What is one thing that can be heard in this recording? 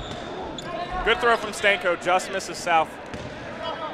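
Young men shout loudly in a large echoing gym.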